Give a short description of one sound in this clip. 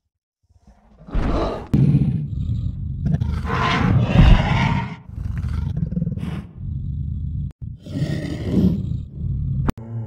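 A large creature growls and roars loudly.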